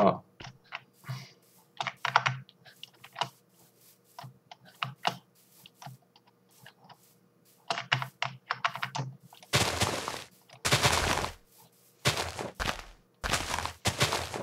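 Footsteps crunch over grass.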